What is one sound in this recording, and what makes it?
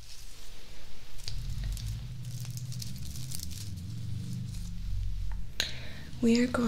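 Lace fabric rustles softly close by.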